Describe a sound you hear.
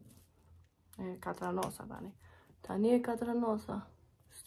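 A young woman talks calmly and close up.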